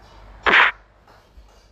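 A punch lands with a sharp smack.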